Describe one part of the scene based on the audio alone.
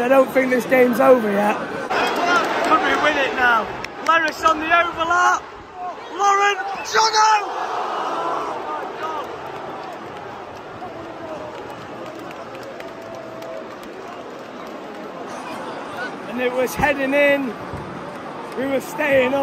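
Men close by shout and cheer excitedly.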